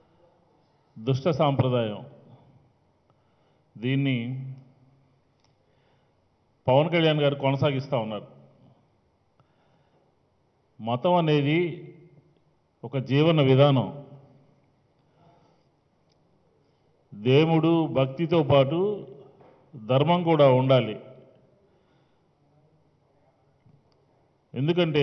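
A middle-aged man speaks firmly into a microphone in short bursts with pauses.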